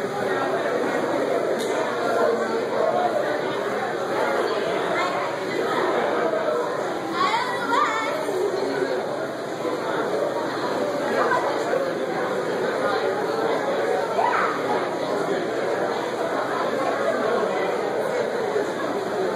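A fiddle plays a lively tune.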